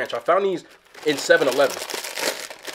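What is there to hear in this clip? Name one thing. A chip bag crinkles as it is torn open.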